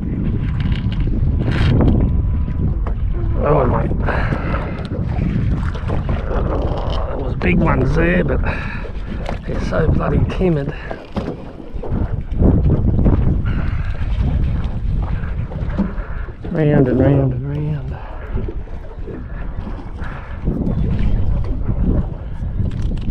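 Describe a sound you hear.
A fishing reel clicks and whirs as it is wound.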